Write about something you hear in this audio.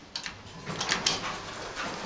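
An elevator button clicks as it is pressed.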